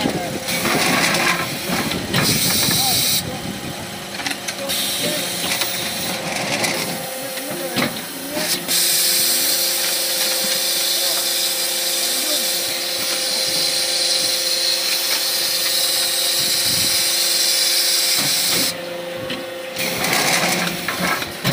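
A machine press thumps and clanks as it moulds a block.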